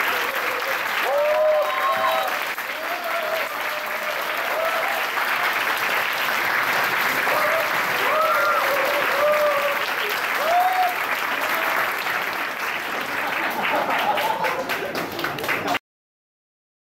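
A large crowd claps and applauds.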